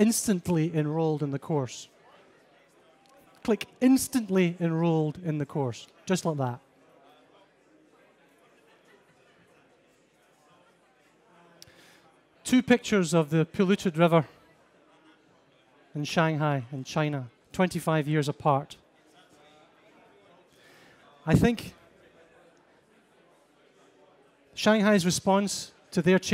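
A young man speaks calmly through a microphone and loudspeakers in a large room, with long pauses.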